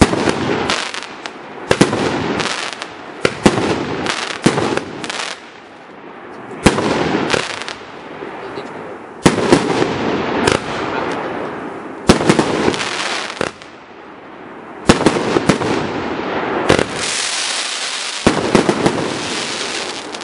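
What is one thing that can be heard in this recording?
Firework shells from a cake thump as they launch and burst overhead.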